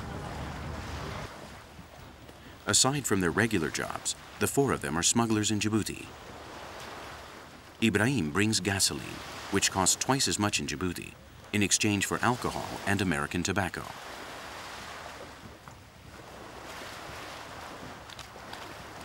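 Water splashes around wading legs.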